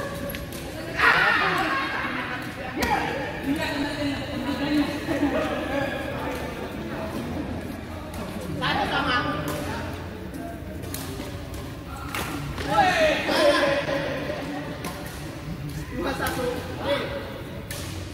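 Young men shout and laugh during play.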